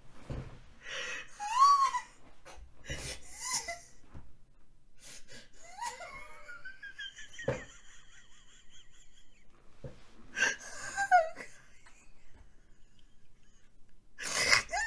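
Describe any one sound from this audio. A young woman squeals with delight.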